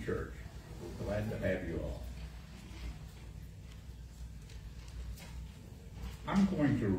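An elderly man speaks calmly into a microphone in a room with a slight echo.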